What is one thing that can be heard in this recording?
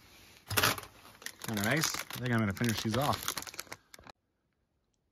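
A plastic snack bag crinkles and rustles.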